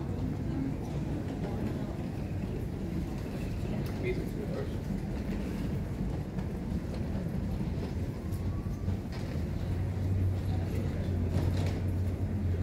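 A low, steady hum and murmur fill a large, echoing hall.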